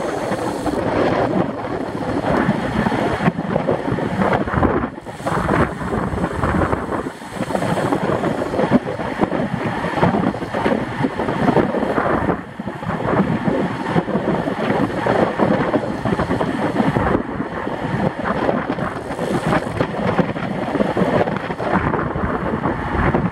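Wind rushes loudly and steadily over a microphone.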